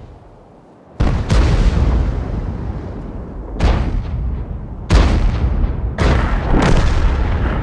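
Tank guns fire with loud booming blasts.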